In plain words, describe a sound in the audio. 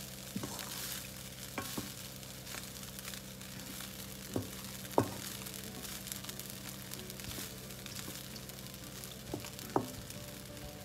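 A wooden spatula scrapes and knocks against a wok.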